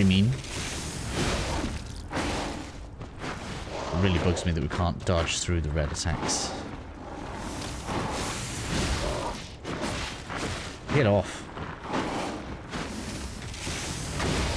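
Fire crackles and bursts in short blasts.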